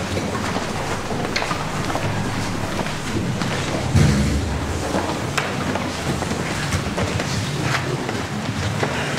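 Footsteps shuffle across a wooden floor in a large echoing hall.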